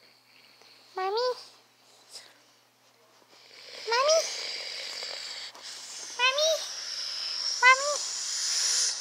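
A plush toy squeaks as it is squeezed.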